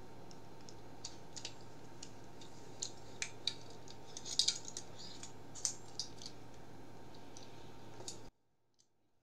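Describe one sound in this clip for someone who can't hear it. Small objects click and tap close to a microphone.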